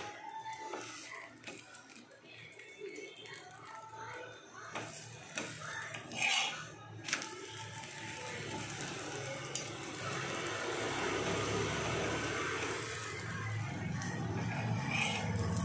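Flatbread sizzles softly on a hot pan.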